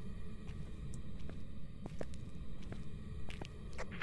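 Footsteps tap slowly on cobblestones.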